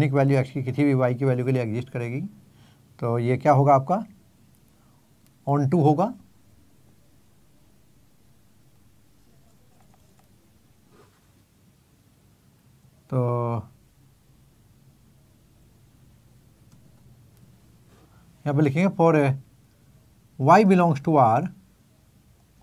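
An elderly man speaks calmly in short bursts, close to a microphone.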